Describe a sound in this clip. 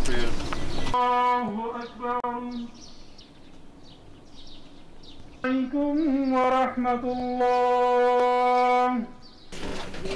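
A man chants a prayer through a loudspeaker.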